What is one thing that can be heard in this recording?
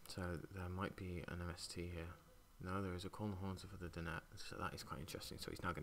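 Playing cards are laid down on a soft mat.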